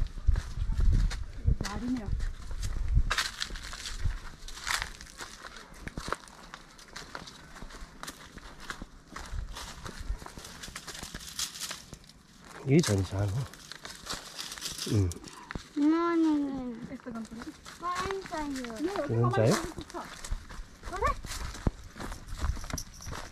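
Footsteps crunch on dry leaves and gravel.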